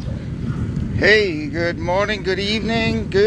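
An elderly man speaks close to the microphone.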